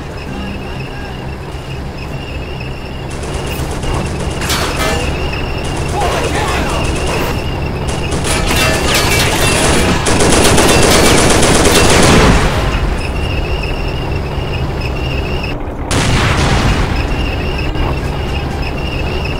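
A tank engine rumbles steadily as it drives over dirt.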